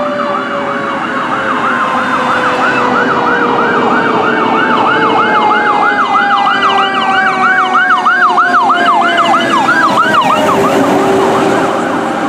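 An air horn blares loudly from a fire engine.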